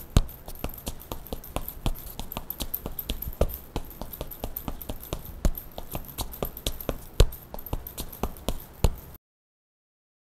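Gloved fists pound a speed bag in a rapid, uneven rhythm of sharp thuds.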